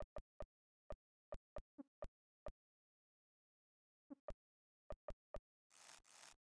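Short electronic menu blips sound in quick succession.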